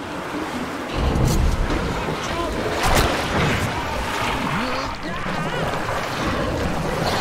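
A creature shrieks and roars up close.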